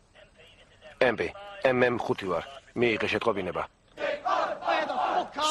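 A man shouts angrily up close.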